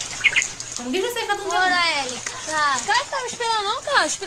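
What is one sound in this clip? A young woman talks cheerfully close to a microphone.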